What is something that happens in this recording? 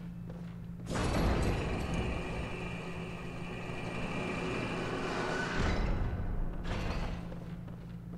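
A heavy lift rumbles and rattles as it rises.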